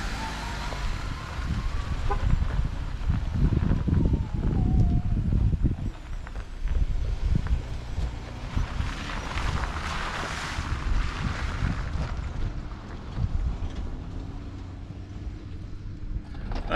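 A vehicle engine rumbles as an off-road vehicle drives slowly over a dirt track and fades into the distance.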